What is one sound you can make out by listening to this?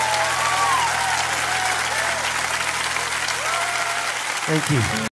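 A saxophone plays a wailing melody with bending notes.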